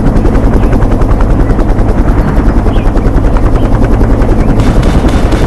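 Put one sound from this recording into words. A helicopter's rotor thumps in a fast, steady rhythm.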